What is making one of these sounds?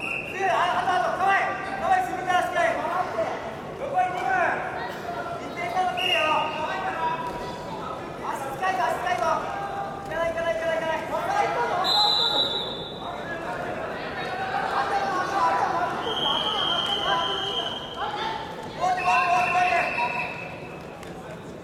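Spectators shout and cheer loudly in an echoing hall.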